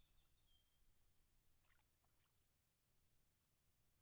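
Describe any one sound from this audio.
A fishing line whooshes out on a cast.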